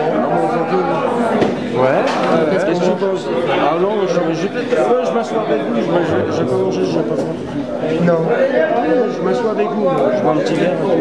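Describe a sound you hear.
A piano plays jazz chords.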